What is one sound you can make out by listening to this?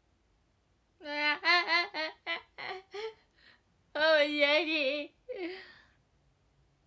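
A young woman laughs brightly close to a microphone.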